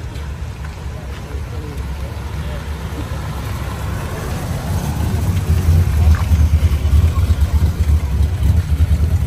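An old car engine idles with a deep, lumpy rumble and grows louder as it comes close.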